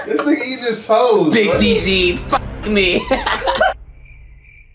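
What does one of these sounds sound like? Young men talk and laugh loudly nearby.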